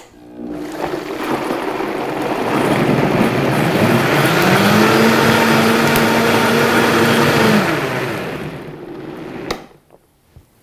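A blender motor roars loudly, blending liquid, then winds down.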